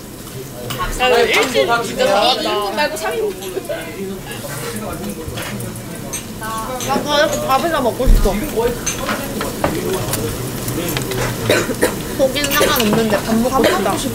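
Young men and women chatter and laugh close by.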